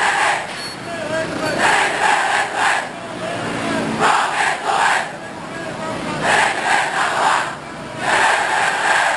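A large crowd shouts and chants in rhythm outdoors.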